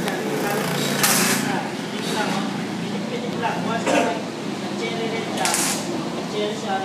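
An arc welder crackles and hisses in short bursts.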